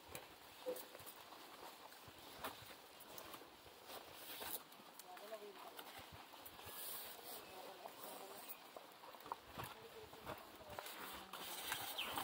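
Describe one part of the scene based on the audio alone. Bare hands and feet scrape and thump against a palm trunk.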